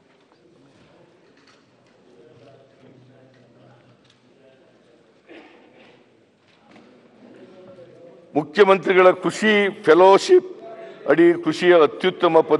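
An elderly man speaks through a microphone, faint at first, then loud and clear as he reads out.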